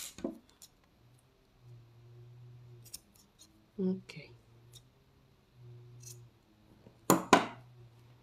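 Scissors snip thread with sharp clicks.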